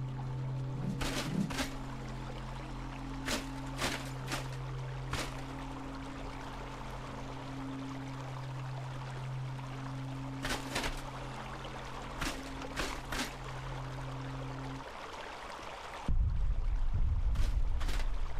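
Footsteps crunch through grass and sand.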